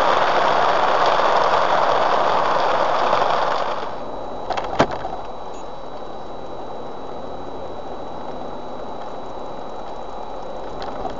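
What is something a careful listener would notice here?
A car engine hums low and steadily.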